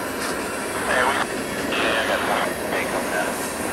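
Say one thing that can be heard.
Steel wheels squeal against the rails.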